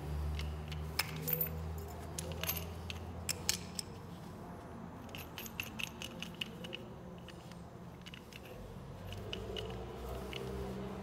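A gloved hand rustles and scrapes close by.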